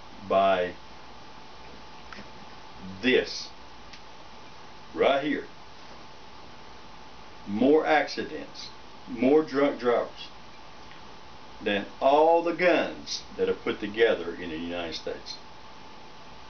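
An elderly man talks casually in short bursts, close by.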